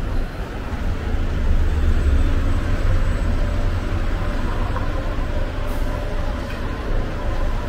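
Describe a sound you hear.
A bus engine rumbles close by.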